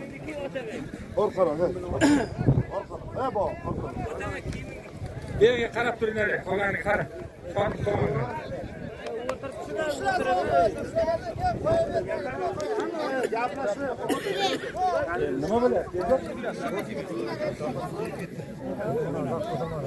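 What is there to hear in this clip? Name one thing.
Men shout nearby with excitement.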